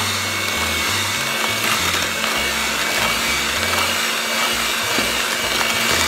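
A handheld mixer whirs steadily as it churns crumbly dough in a plastic bowl.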